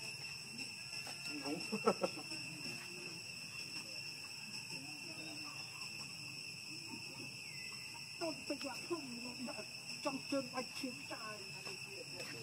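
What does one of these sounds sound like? A baby monkey squeaks and cries nearby.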